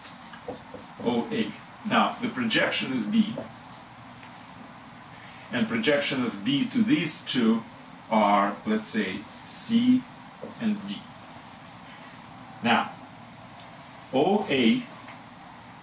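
An elderly man speaks calmly and clearly, close by, with pauses.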